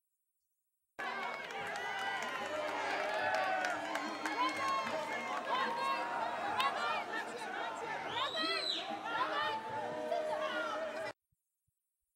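A crowd of fans cheers and shouts excitedly nearby.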